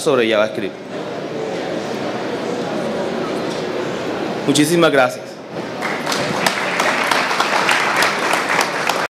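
A man speaks through a microphone and loudspeaker in a large hall.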